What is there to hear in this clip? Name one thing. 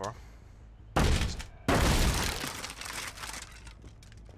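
A wooden barrier splinters and crashes apart.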